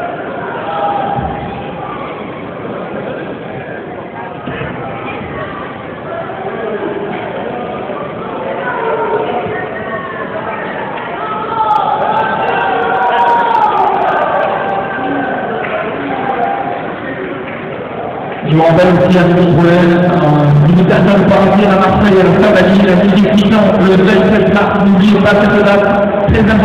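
A crowd of people talks and shouts.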